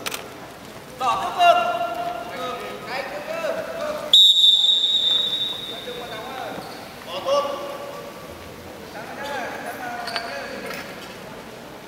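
A man shouts loudly in an echoing hall.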